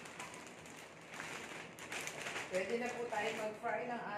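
A plastic bag crinkles and rustles as a woman shakes it.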